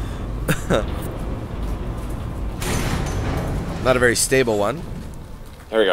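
A heavy metal door slides open with a mechanical hiss.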